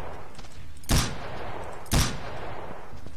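Gunshots fire with a sharp crack and a short echo.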